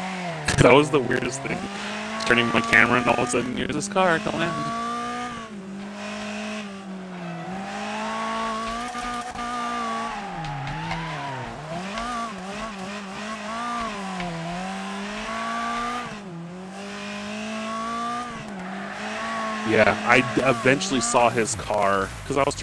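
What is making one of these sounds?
A car engine revs and whines, rising and falling as it shifts gears.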